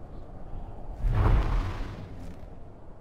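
A magic blast whooshes with a deep rumble.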